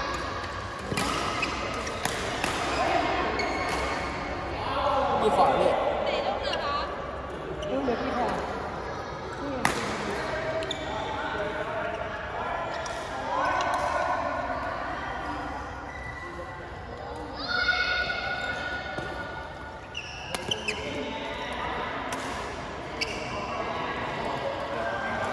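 Young players call out and talk in a large echoing hall.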